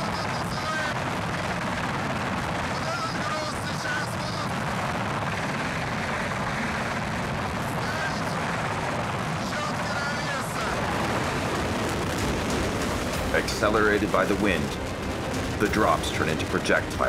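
Helicopter rotors thump loudly and steadily overhead.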